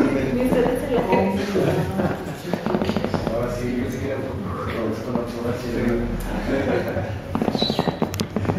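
Several adults talk and laugh together close by.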